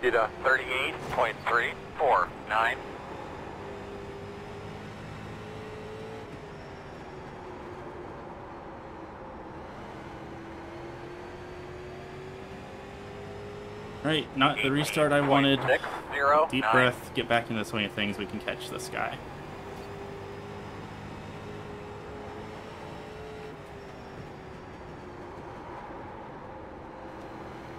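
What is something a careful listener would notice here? A race car engine drones steadily, its pitch rising and falling.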